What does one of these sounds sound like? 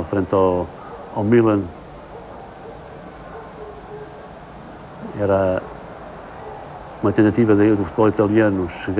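A large crowd murmurs in the distance.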